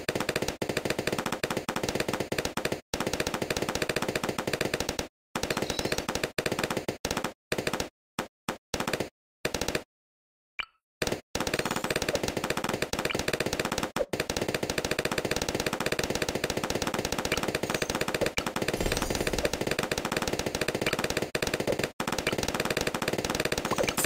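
Cartoon balloons pop rapidly in a video game.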